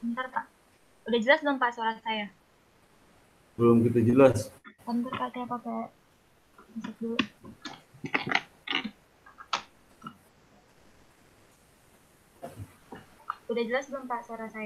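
A young woman speaks over an online call.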